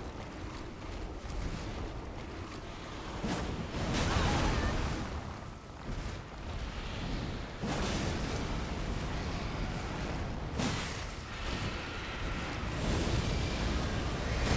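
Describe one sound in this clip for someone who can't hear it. A huge creature roars and growls.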